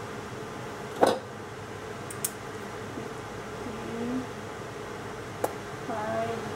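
Small utensils clink briefly now and then.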